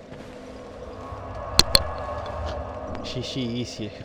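A fire flares up with a whoosh.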